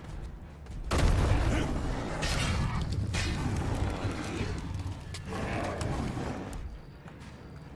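Fire bursts with a loud roaring whoosh.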